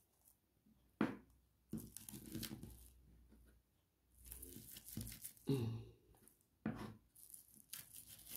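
A knife scrapes and grates against a vegetable in short strokes.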